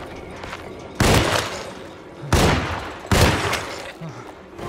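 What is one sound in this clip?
Revolver shots ring out loudly with a short echo.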